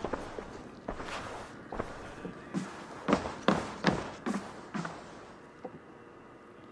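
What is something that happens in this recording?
Footsteps thud on creaking wooden floorboards.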